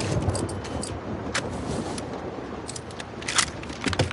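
A shotgun clacks as it is lifted and handled.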